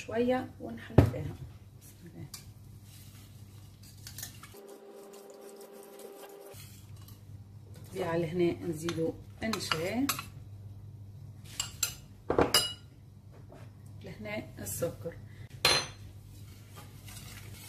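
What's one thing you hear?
A whisk clinks against a metal pot.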